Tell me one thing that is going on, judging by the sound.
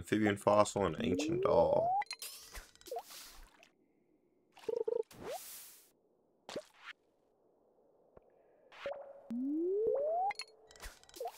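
A fishing line whizzes out with a rising whistle as it is cast into water.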